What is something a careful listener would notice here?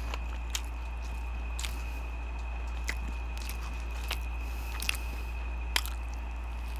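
Crispy food crackles sharply in a hand close to a microphone.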